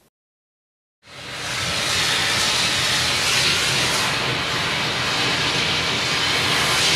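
A steam cleaner hisses loudly and steadily.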